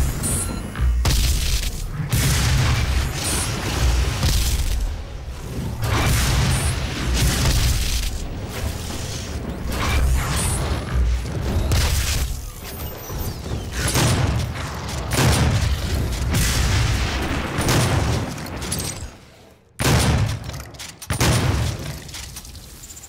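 Heavy gunshots boom again and again, each one rumbling low.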